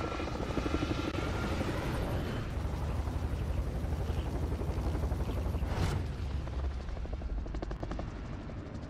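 Helicopter rotors thump loudly and steadily.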